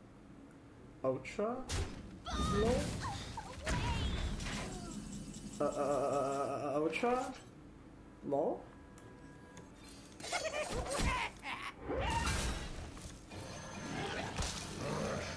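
Game sound effects chime and crash.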